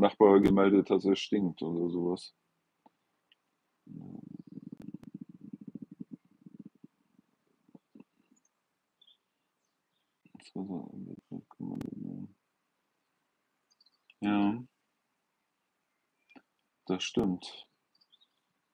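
An older man speaks calmly and close by, in short bursts with pauses.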